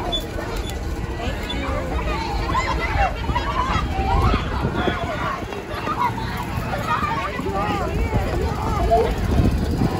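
A small cart's motor hums as it rolls slowly past.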